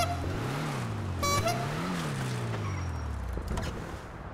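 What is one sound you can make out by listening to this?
A car engine revs up and down as the car drives off.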